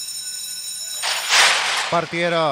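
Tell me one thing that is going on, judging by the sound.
Starting gates bang open with a loud clatter.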